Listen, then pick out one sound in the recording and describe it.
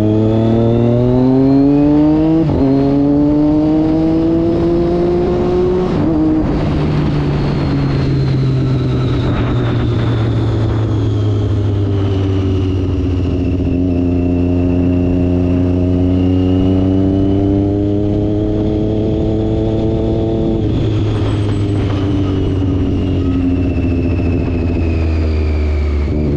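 Wind rushes past at speed.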